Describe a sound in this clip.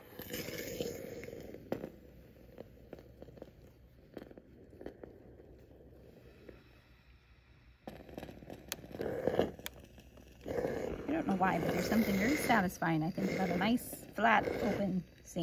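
A steam iron glides and presses over fabric.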